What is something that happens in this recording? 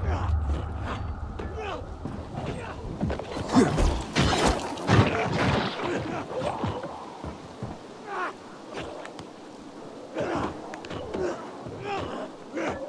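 Footsteps clang on a metal platform.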